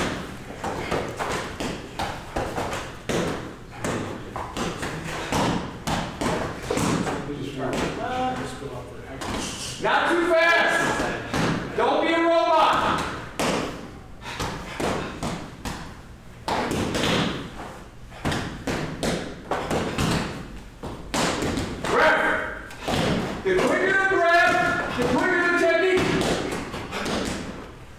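Fists thud against padded targets in quick bursts.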